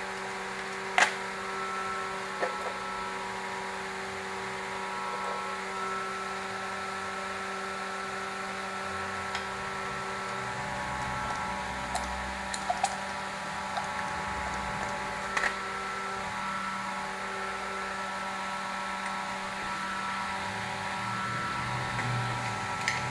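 Metal engine parts click and clink together in hands.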